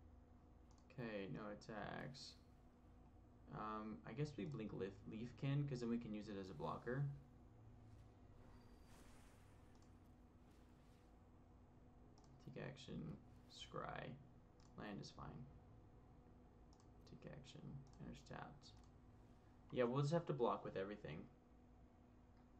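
A young man talks casually into a headset microphone, heard in bursts.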